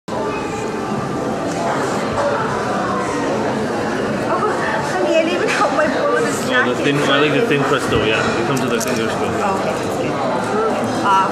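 Many voices chatter in the background.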